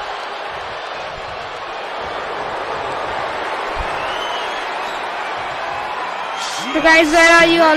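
A large crowd roars steadily.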